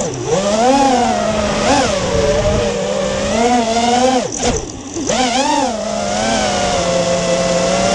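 An engine hums and rises and falls in pitch as a vehicle drives.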